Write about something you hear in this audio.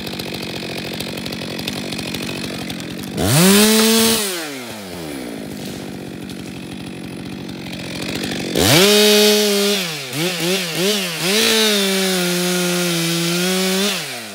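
A chainsaw idles, then revs up loudly in bursts and roars while cutting.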